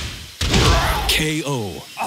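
A heavy punch lands with a loud smack.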